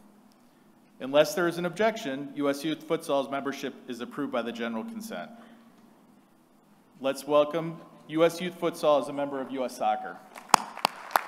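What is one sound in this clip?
A man speaks steadily into a microphone in a large hall.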